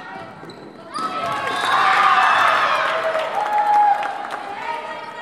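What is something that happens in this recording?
A group of girls cheers loudly.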